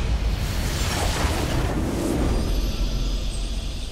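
A triumphant fanfare plays.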